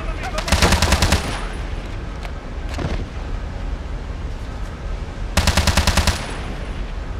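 An automatic rifle fires in short, rapid bursts.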